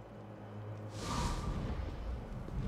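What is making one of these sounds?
A magical portal opens with a shimmering whoosh.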